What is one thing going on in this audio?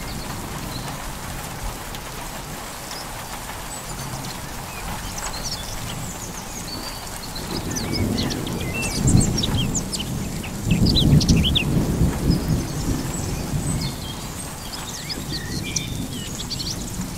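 Wind gusts across an open hillside.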